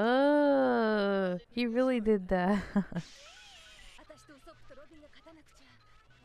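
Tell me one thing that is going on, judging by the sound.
A young woman laughs softly into a microphone.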